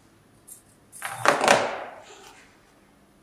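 Pliers are set down on a hard surface with a clatter.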